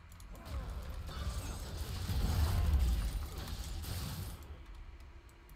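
Spell blasts and impacts crash during a game fight.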